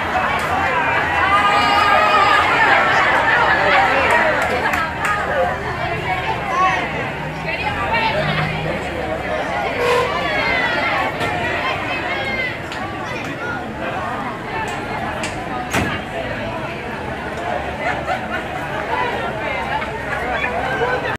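A large crowd of men and women shouts and jeers outdoors.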